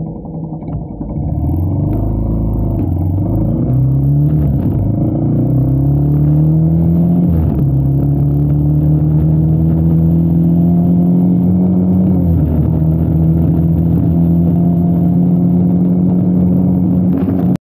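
A motorbike engine revs up and accelerates, dropping in pitch at each gear change.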